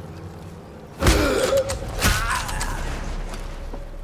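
A fight breaks out with heavy thuds and scuffling.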